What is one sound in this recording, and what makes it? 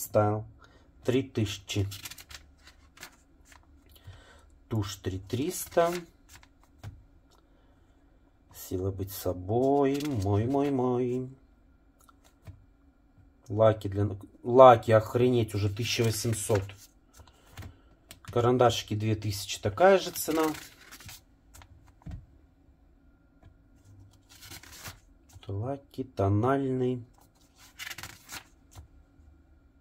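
Glossy magazine pages rustle as they are turned.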